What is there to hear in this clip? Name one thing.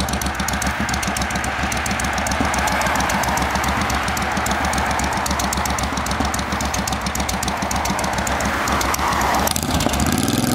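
A V-twin cruiser motorcycle rumbles as it rolls slowly at low revs.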